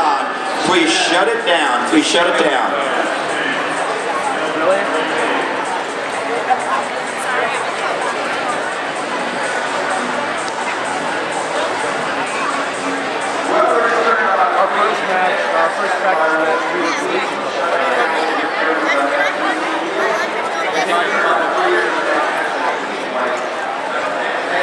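A large crowd chatters and calls out in a big echoing hall.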